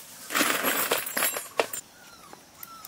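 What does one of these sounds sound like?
Leaves and bamboo stalks rustle as someone moves through them.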